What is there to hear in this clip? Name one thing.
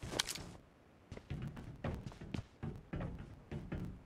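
Footsteps run on hard pavement in a video game.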